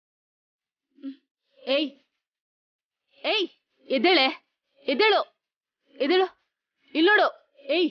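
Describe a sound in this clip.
A woman speaks loudly with agitation in short bursts.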